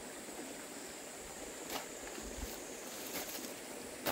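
A hoe scrapes and thuds into dry earth.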